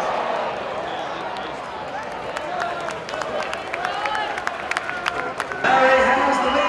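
A crowd of spectators chatters in an open-air stadium.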